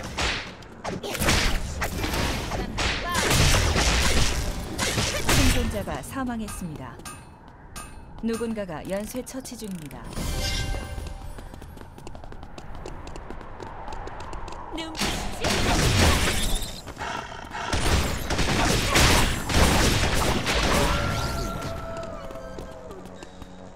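Magic blasts whoosh and boom in quick bursts.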